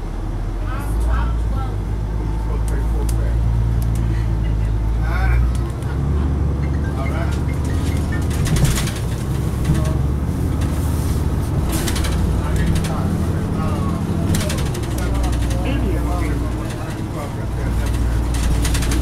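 A bus interior rattles and creaks.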